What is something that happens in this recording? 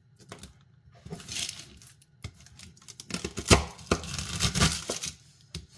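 A knife blade scrapes and chops through crumbs on a board.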